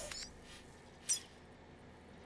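A short electronic beep sounds.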